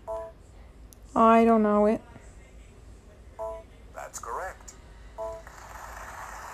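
A handheld game console beeps and chimes.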